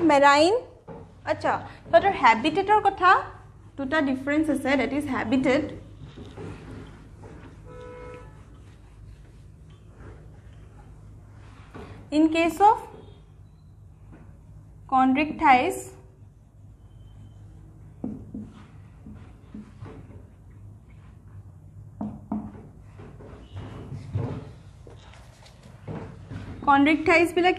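A young woman speaks clearly, as if teaching.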